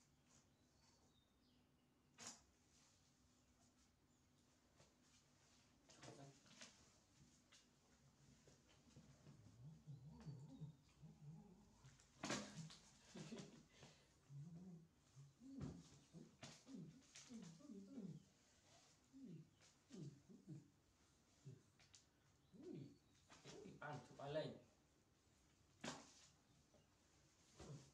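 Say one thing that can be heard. Cloth rustles as a towel is rubbed and shaken.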